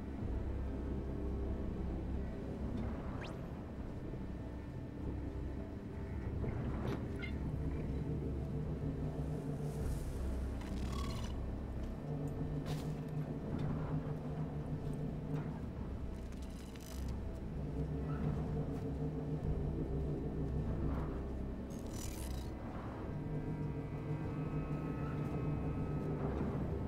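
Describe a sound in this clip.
A small hovering robot hums with a soft electronic buzz.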